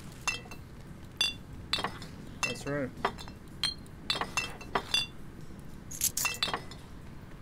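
Short, bright interface clicks and chimes sound in quick succession as items are picked up and placed.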